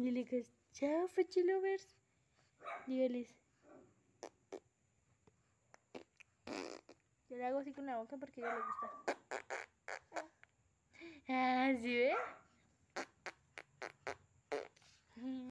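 A baby coos and babbles.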